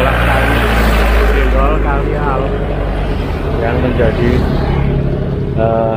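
A motorcycle engine buzzes as it passes nearby.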